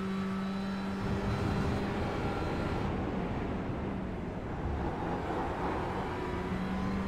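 Tyres rumble and scrub over the track.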